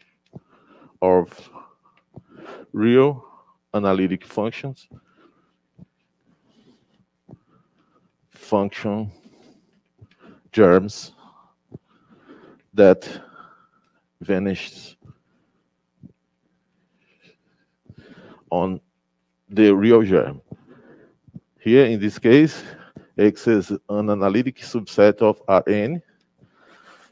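A man lectures calmly through a microphone, in short bursts with pauses.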